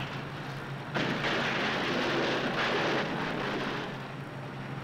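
Heavy metal crashes and scrapes loudly.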